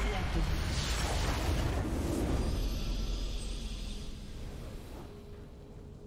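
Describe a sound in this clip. A loud game explosion booms and then fades away.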